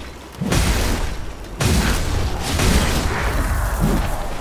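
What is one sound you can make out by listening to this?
A heavy blade swishes through the air in whooshing sweeps.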